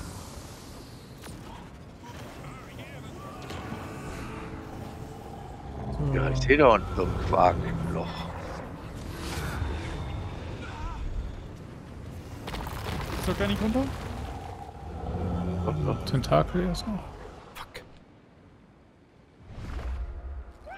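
A deep rumbling drone swells and fades.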